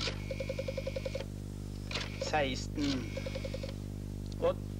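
A telephone rings in short trilling bursts.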